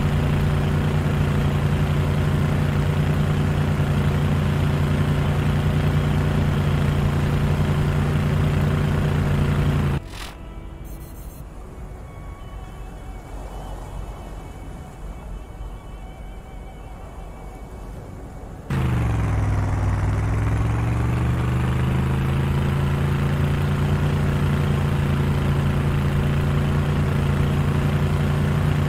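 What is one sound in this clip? A vehicle engine drones steadily, dropping low and revving back up.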